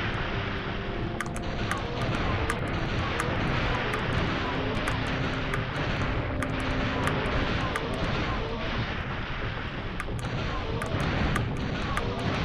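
Gunshots fire in quick, repeated bursts.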